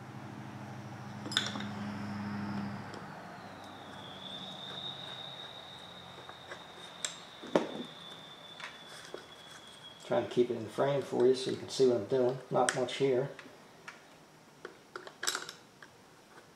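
Small metal tools clink and rattle.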